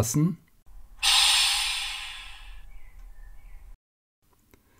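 Compressed air hisses out of a model locomotive in a sudden burst and slowly fades.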